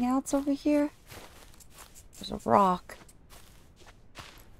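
Footsteps swish through grass and sand.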